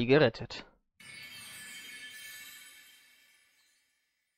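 A bright magical shimmer twinkles and fades.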